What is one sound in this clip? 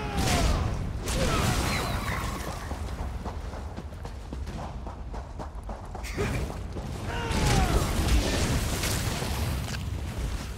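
Sword blows strike a creature.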